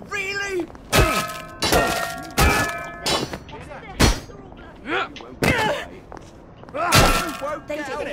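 A wooden plank strikes with heavy thuds.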